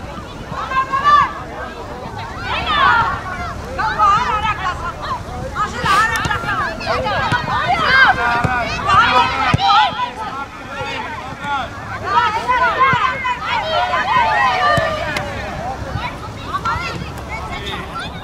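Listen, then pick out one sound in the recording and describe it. Young women shout and call out to each other across an open outdoor field.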